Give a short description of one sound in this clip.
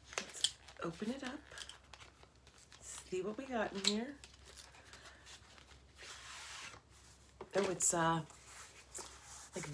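Paper rustles as a woman handles an envelope.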